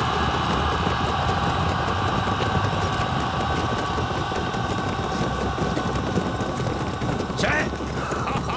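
Many horses gallop with thundering hooves.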